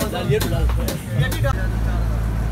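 Bottles and ice clink and rattle in a box.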